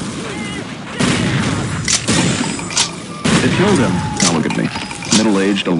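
Guns fire in short, sharp bursts.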